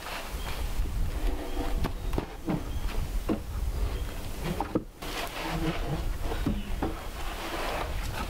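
Wooden poles knock against each other.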